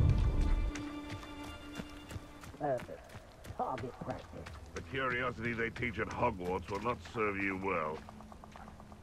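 Footsteps patter quickly on a forest path.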